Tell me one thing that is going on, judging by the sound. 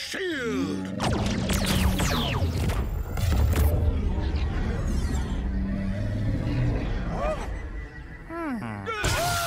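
Electric blasts crackle and boom loudly.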